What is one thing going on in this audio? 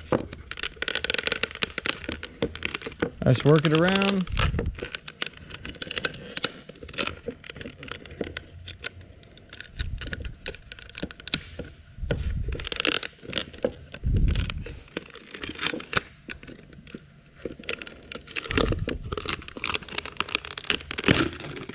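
A wooden stick scrapes and taps against the inside of a plastic container.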